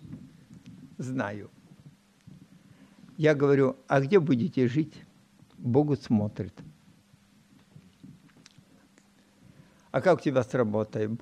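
An elderly man speaks slowly and deliberately into a microphone, heard through a loudspeaker in a large hall.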